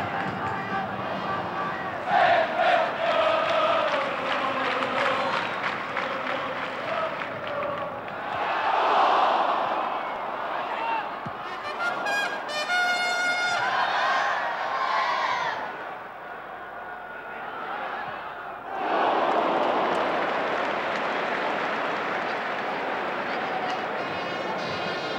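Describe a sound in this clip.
A large stadium crowd roars and cheers throughout.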